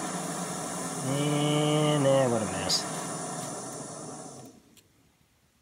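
A camping stove burner hisses steadily, then goes quiet.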